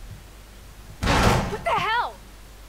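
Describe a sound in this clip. A door is kicked open with a loud bang.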